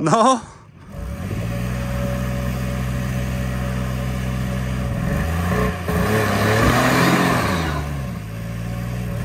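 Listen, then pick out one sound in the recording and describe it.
An engine idles steadily, then revs up and settles back.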